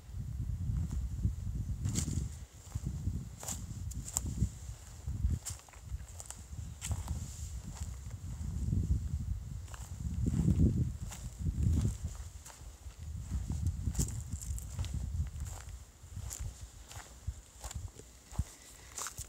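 Footsteps crunch through dry leaves on a dirt trail.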